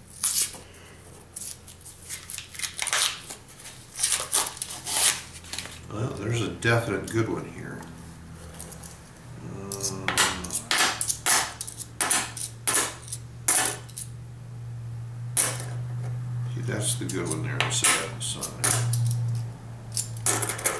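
Metal coins clink and jingle together in hands.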